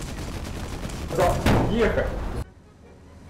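Explosions blast and roar.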